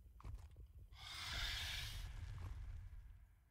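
Grass rustles and swishes as someone pushes through it.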